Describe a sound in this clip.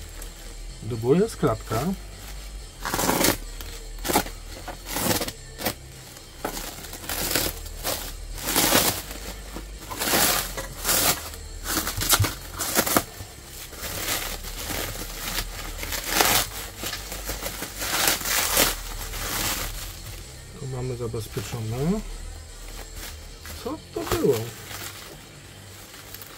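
Thin plastic sheeting crinkles and rustles close by as hands handle it.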